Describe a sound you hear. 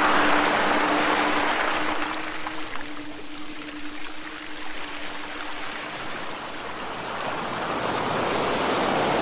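Small waves wash and lap against a shore.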